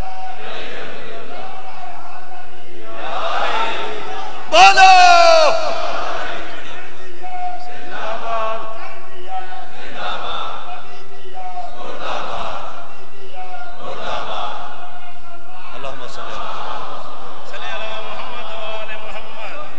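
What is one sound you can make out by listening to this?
A man chants loudly through a loudspeaker in rising and falling phrases.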